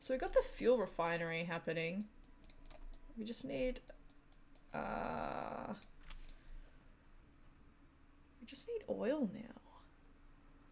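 A woman speaks casually into a close microphone.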